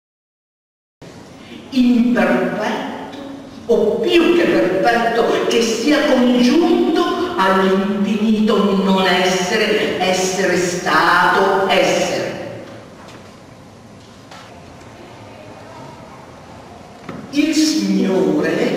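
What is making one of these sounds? An elderly man speaks emphatically into a microphone, with animation.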